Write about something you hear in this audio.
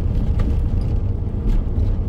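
An oncoming car passes by.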